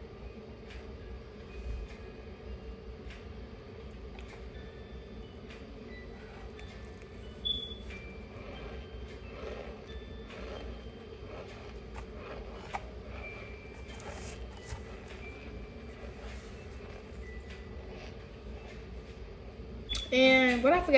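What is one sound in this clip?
A young woman crunches on a mouthful of powdery starch close by.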